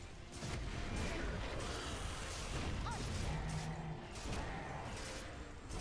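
Spells and weapons clash in a game fight with sharp bursts and whooshes.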